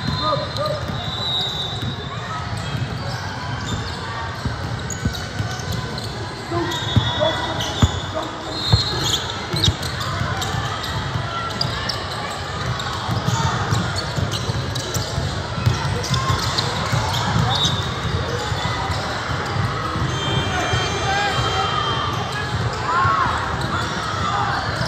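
A crowd of spectators chatters and calls out, echoing in a large hall.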